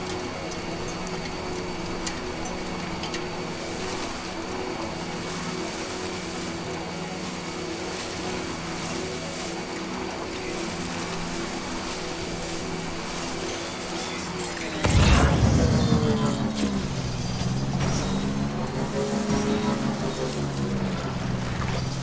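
A small motor hums steadily as a bike rolls over rough ground.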